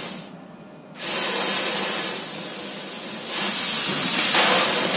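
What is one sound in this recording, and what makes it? A laser cutting machine hisses loudly as it cuts.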